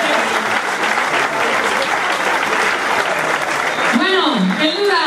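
A crowd applauds and cheers outdoors.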